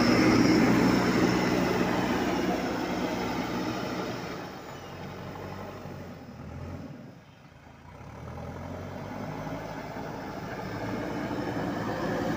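Soil and stones crunch and scrape under a loader's bucket.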